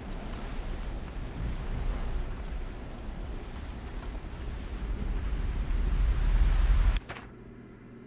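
Water laps and churns steadily.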